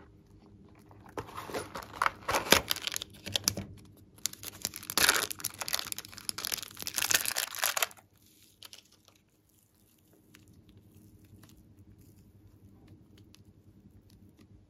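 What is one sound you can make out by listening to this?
Soft slime squishes and squelches between fingers.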